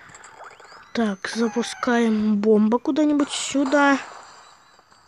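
A cartoon bird squawks as it flies.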